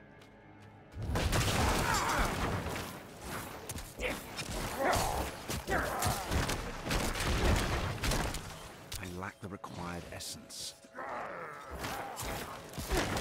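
Weapons clash in a fast fight.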